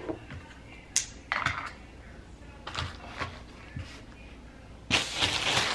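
Plastic bottles and tubes clatter on a counter.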